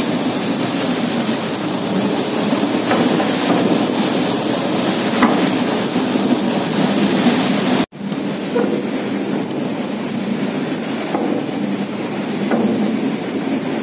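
A boat's engine rumbles steadily.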